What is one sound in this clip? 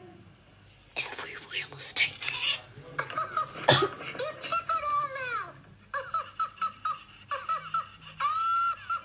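A toy plays a high, squeaky voice that chatters and laughs.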